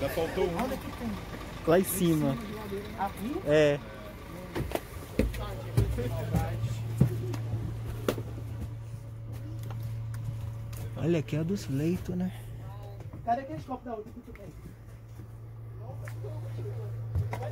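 Several people talk nearby inside a bus.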